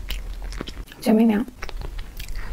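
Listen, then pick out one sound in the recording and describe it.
A young woman makes a short hum close to a microphone.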